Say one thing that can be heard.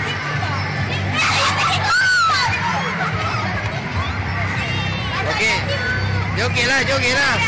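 A crowd of girls chatters and shrieks close by, outdoors.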